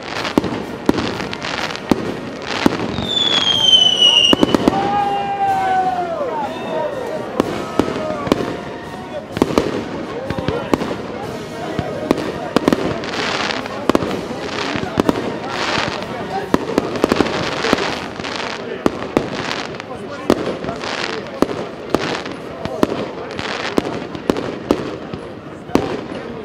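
Fireworks bang and pop again and again.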